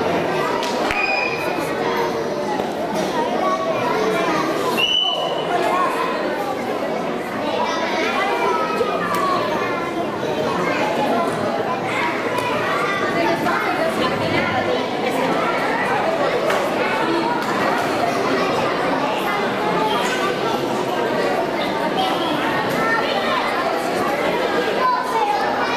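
A young man speaks calmly into a microphone, heard through loudspeakers in a large echoing hall.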